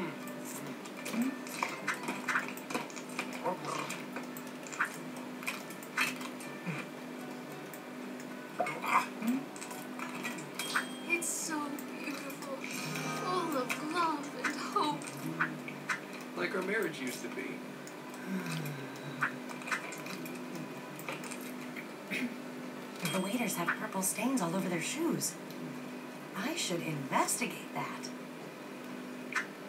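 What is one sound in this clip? Soft game music plays from a nearby speaker.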